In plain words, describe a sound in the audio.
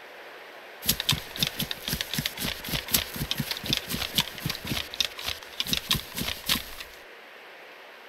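Quick footsteps run through tall grass.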